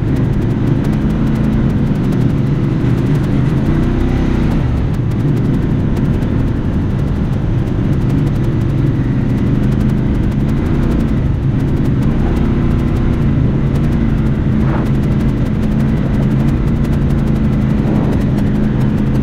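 An off-road vehicle's engine drones loudly and steadily, rising and falling in pitch.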